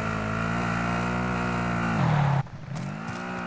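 A vehicle engine roars loudly, then cuts out.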